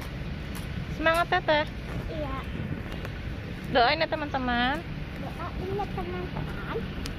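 A young girl speaks close by in a high, lively voice.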